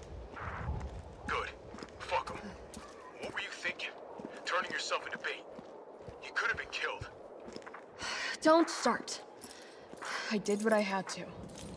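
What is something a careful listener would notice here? Footsteps tread on hard pavement.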